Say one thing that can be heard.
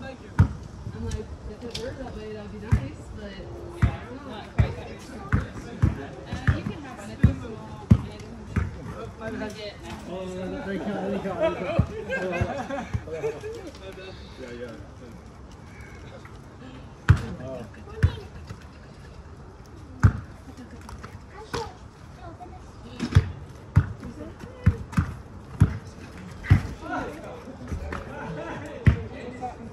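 A basketball bounces on an outdoor sport court.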